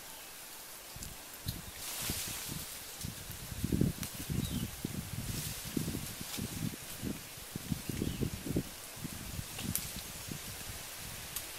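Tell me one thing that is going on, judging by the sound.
Tree branches creak and leaves rustle as someone climbs a tree.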